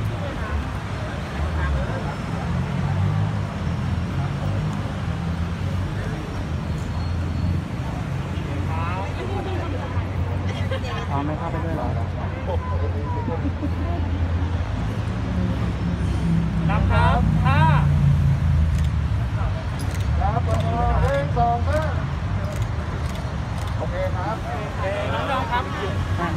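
A crowd of men and women chatter nearby outdoors.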